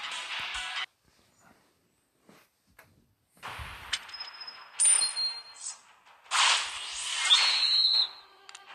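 Electronic game sound effects whoosh and chime in short bursts.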